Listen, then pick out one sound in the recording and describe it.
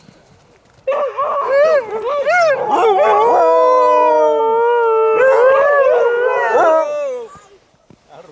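Several dogs howl and yowl loudly nearby.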